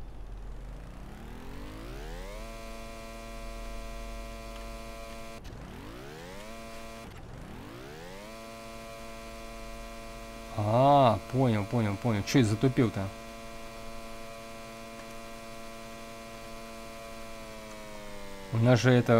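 A boat engine revs up and then drones steadily.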